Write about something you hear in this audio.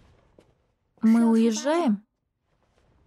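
A young man calls out nearby in a drawn-out voice.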